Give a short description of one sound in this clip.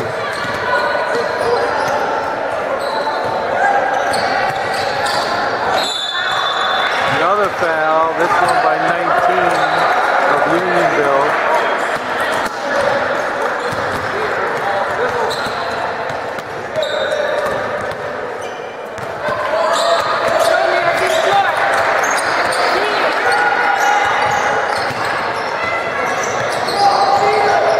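Sneakers squeak on a hardwood court in a large echoing gym.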